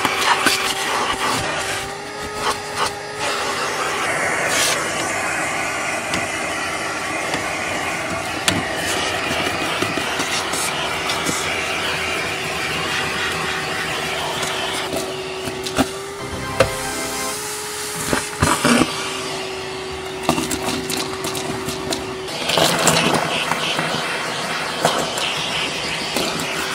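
A vacuum nozzle scrapes and rattles against carpet.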